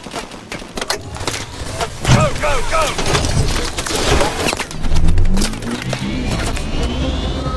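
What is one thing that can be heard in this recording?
A vehicle engine starts up and revs higher as it speeds away.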